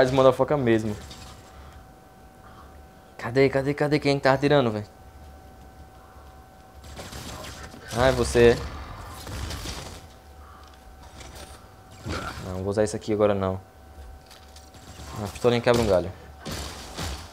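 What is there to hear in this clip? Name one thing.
A young man talks with animation in short bursts.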